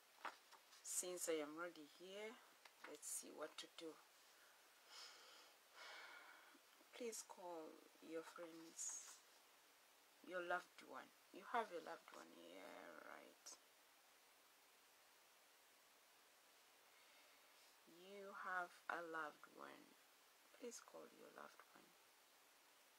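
A woman speaks calmly and softly, close by, in short bursts with pauses.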